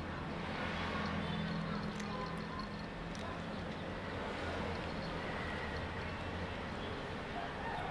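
A cat chews and crunches on food close by.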